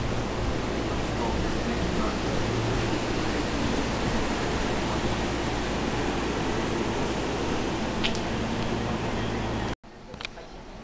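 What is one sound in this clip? A train rumbles steadily as it rolls alongside a platform.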